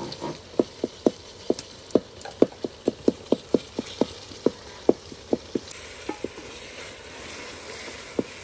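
A metal ladle clinks and scrapes against the sides of a pot of stew as it is stirred.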